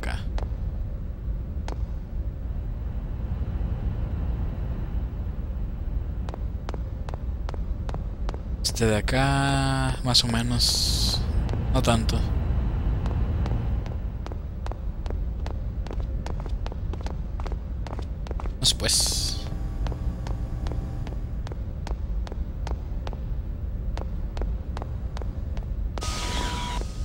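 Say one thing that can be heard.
Footsteps tap steadily on a hard metal floor.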